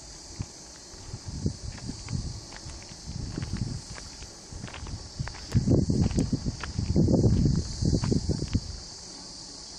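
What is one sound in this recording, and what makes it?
Wind gusts across an open hilltop.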